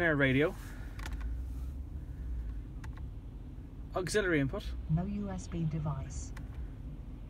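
Buttons click softly on a car stereo.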